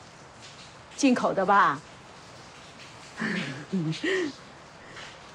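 An elderly woman speaks warmly.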